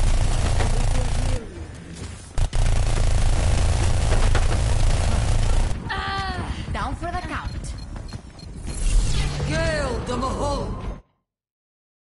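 Gunfire and energy blasts crackle and boom in a game fight.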